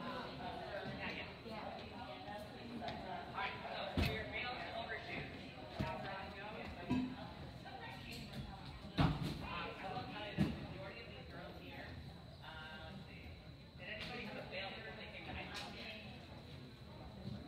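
Women and girls chatter nearby in a large echoing hall.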